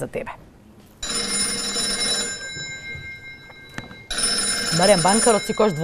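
An old telephone rings loudly.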